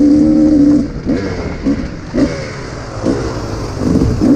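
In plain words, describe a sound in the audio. Dirt bike engines rev up and down in short bursts.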